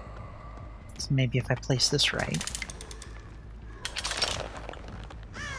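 A metal bear trap clanks as it is set.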